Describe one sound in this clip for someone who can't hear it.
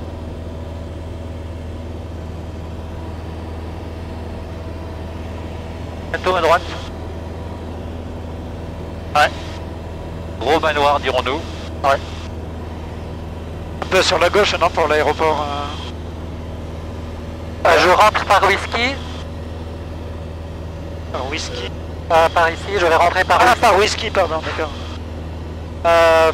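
A light aircraft's engine drones steadily throughout.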